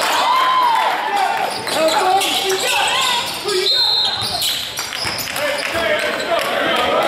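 A basketball thumps as it is dribbled on the floor.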